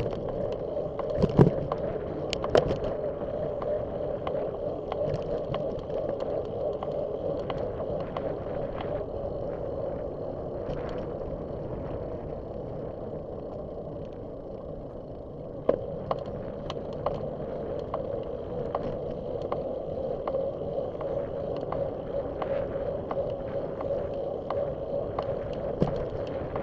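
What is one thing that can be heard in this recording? Tyres roll over a bumpy road with occasional knocks.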